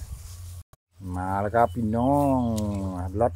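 A man sings long drawn-out notes.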